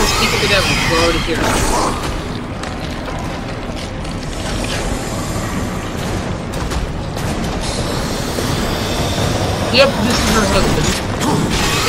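A huge creature roars loudly.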